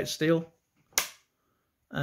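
A coin taps against a metal tin.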